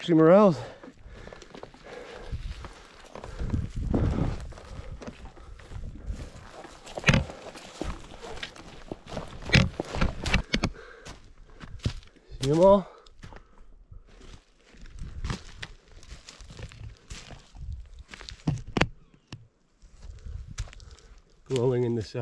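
Footsteps crunch on dry twigs and forest litter.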